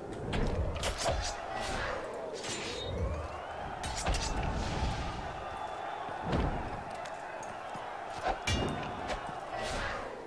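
Metal weapons clash and strike in sharp, quick blows.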